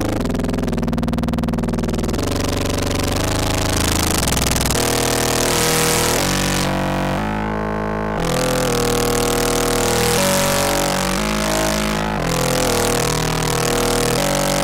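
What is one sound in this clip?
A synthesizer plays a buzzing electronic tone that shifts in pitch and timbre.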